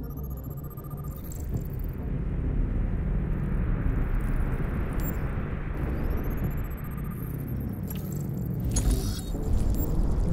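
Electronic scanning tones chirp and rise in pitch.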